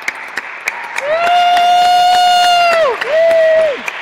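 A woman sings a high, sustained note in a large echoing hall.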